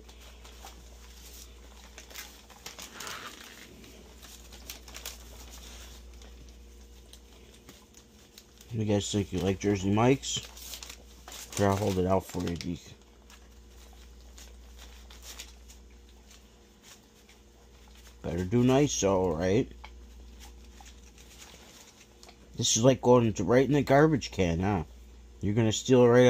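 Thin paper crinkles and rustles as it is handled.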